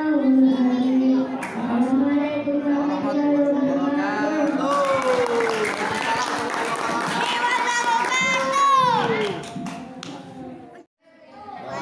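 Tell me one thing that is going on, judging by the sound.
A young boy chants loudly into a microphone.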